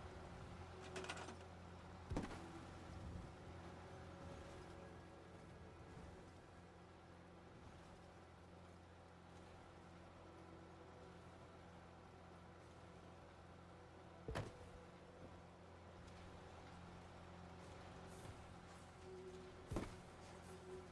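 Short sharp clicks sound now and then as objects are picked up and placed.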